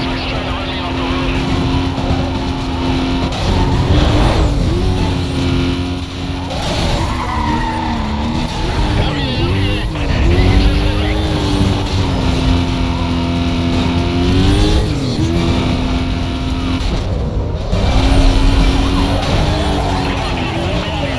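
A car engine roars at high speed, its pitch rising and falling with gear shifts.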